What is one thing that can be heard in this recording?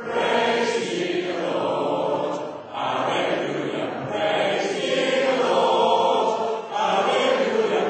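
A radio broadcast plays through a loudspeaker.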